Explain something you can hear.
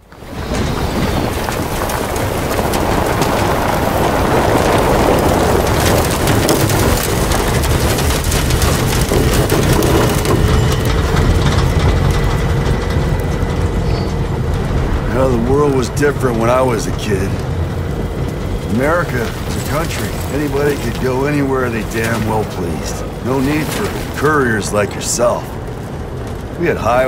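A vehicle's engine rumbles steadily.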